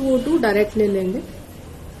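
Liquid trickles into a plastic cup.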